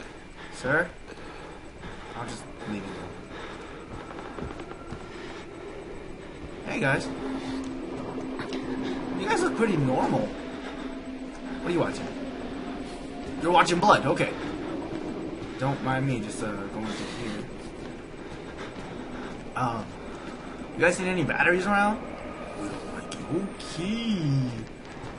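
A young man talks in bursts into a close microphone, sometimes with animation.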